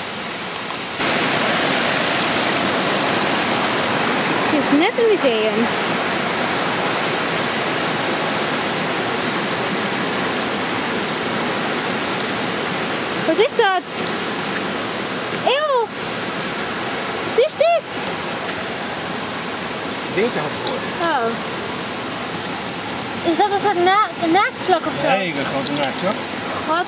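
Water rushes steadily over rocks in a stream.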